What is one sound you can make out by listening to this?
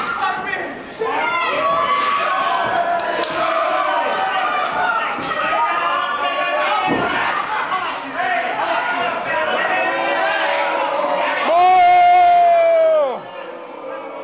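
A young woman shouts loudly and cheers close by.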